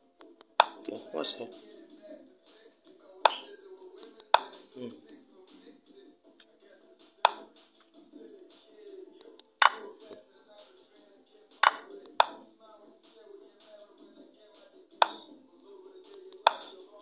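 Short sharp clicks sound as chess pieces are moved in a game app.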